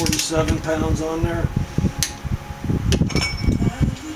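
A metal wrench clinks against a wheel hub.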